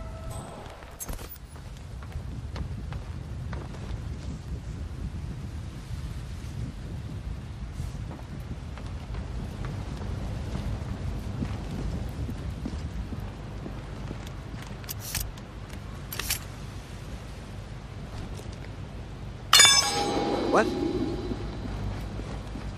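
Footsteps shuffle quietly on hard ground.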